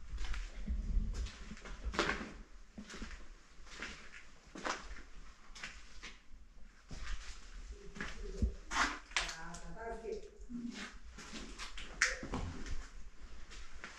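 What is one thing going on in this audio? Footsteps thud and scuff on a wooden floor.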